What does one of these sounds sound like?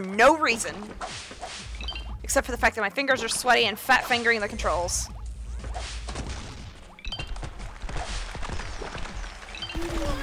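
Playful video game sound effects chime and pop.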